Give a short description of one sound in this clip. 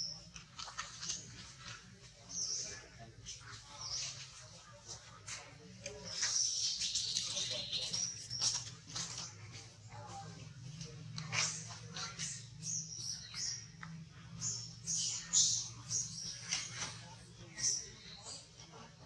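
A baby monkey suckles with soft smacking sounds.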